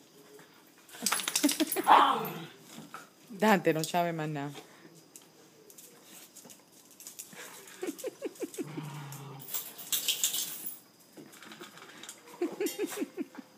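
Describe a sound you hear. Dogs growl and whine playfully, close by.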